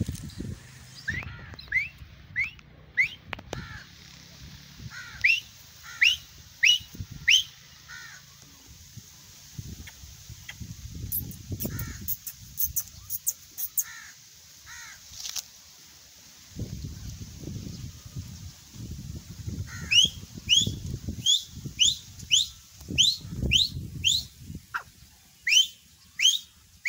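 A partridge calls repeatedly with sharp rising notes nearby.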